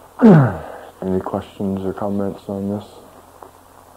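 A man speaks in slow, drawn-out sounds close to a microphone.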